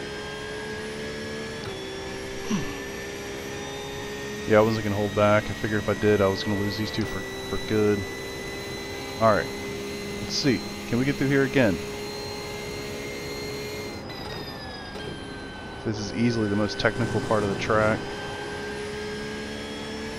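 A racing car engine hums steadily, shifting pitch with the gears.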